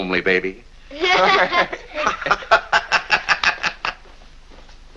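A group of boys and men laugh heartily together.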